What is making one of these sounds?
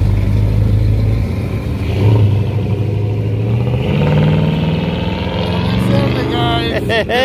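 A pickup truck's engine rumbles loudly, then revs and rises in pitch as it pulls away.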